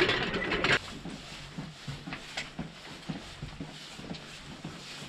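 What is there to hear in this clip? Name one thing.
Footsteps walk slowly along a narrow stone passage.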